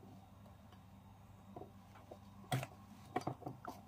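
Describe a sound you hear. A small plastic toy knocks lightly on a rough surface.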